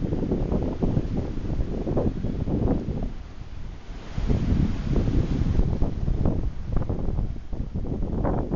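Waves wash and surge onto a shore.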